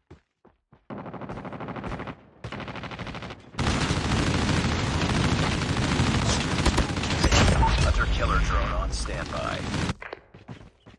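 A heavy rotary gun fires long, rapid bursts.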